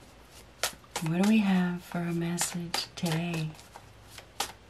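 A middle-aged woman speaks softly and close to a microphone.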